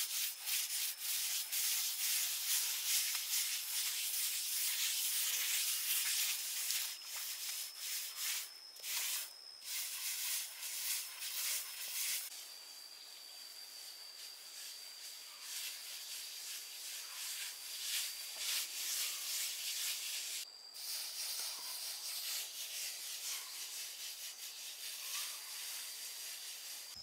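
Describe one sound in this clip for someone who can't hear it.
A hand float scrapes and rubs across a plaster surface.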